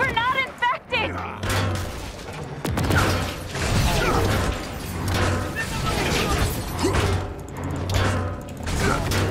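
Gunshots and blasts ring out rapidly.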